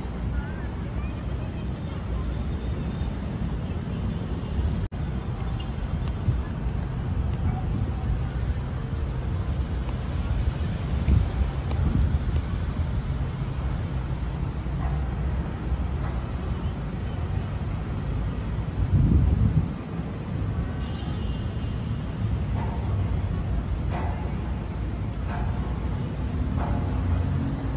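Wind blows steadily outdoors, with a few stronger gusts.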